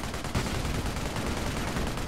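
Gunfire crackles in a battle.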